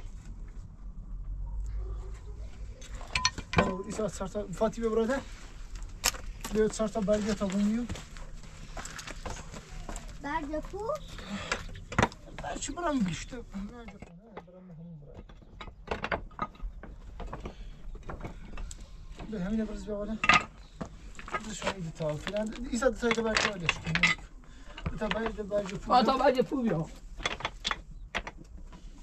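Objects knock and clatter close by.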